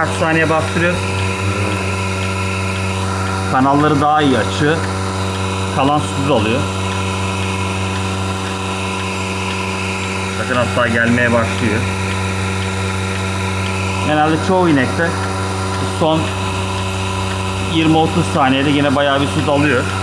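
Milk gurgles and sucks through hoses.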